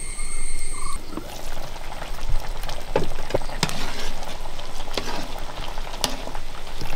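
A metal ladle scrapes and stirs food in a metal pan.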